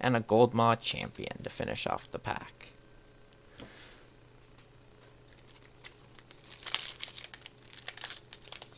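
Playing cards rustle and slide.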